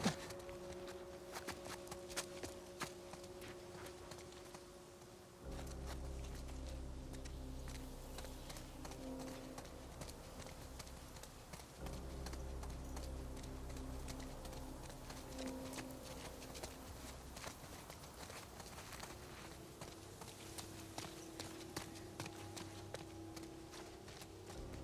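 Footsteps walk steadily on hard paving outdoors.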